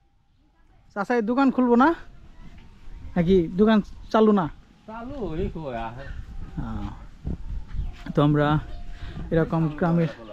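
An elderly man speaks calmly and close by, outdoors.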